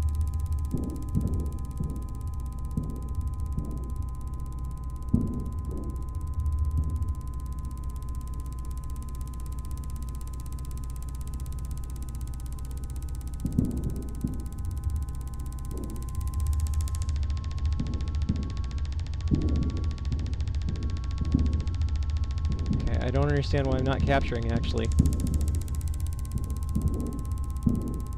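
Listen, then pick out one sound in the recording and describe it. A spacecraft's engines hum low and steady.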